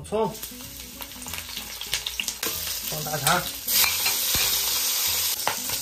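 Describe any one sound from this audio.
Oil sizzles softly in a pot.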